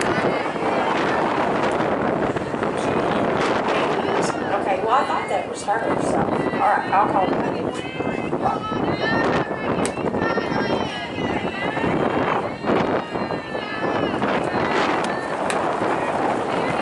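Young women call out and cheer across an open field.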